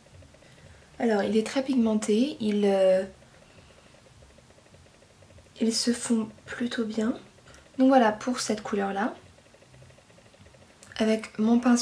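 A young woman talks calmly and close to the microphone, in short bursts.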